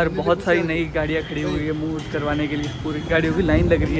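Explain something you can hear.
A crowd murmurs in a busy street outdoors.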